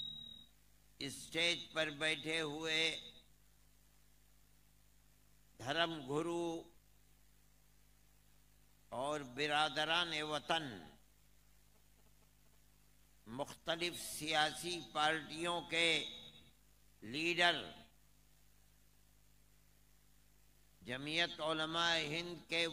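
An elderly man speaks slowly and forcefully into a microphone over a loudspeaker, with long pauses between phrases.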